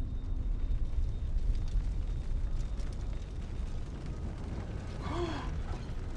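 Fire crackles nearby.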